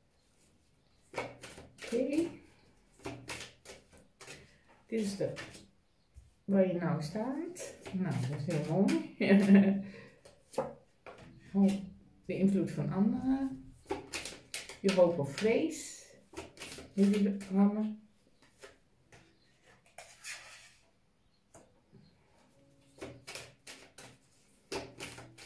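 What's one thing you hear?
Cards slide and tap as they are shuffled and laid down.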